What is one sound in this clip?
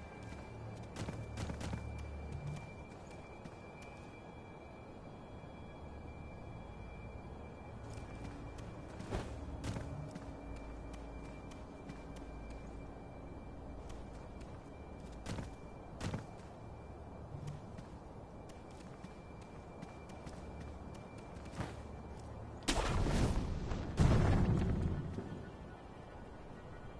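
Footsteps patter on grass and rock.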